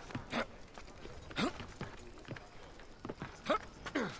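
Hands scrape and grip a brick wall during a climb.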